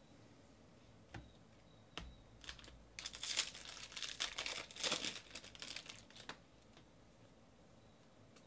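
Cards shuffle and flick against each other.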